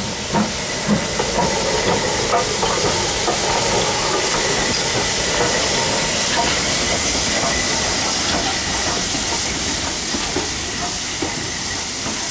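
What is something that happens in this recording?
Steel wheels clank over rail joints.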